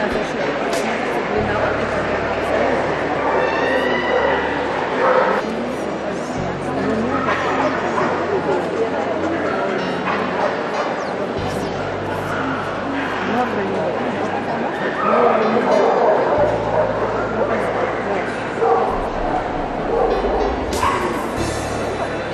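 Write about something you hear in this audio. A large crowd chatters and murmurs in a big echoing hall.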